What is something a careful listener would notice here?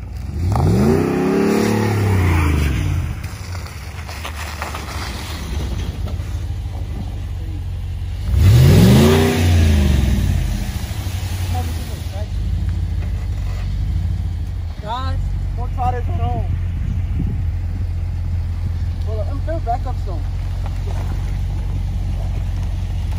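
A pickup truck engine idles with a low steady rumble.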